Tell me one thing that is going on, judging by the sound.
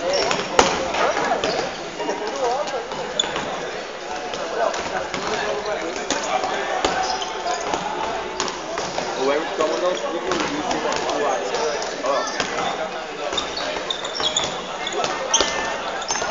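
Men shout and call out to each other across the court.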